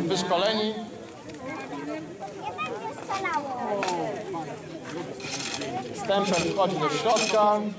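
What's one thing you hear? A crowd of men and women chatters and talks nearby.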